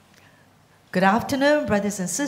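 A woman speaks through a microphone.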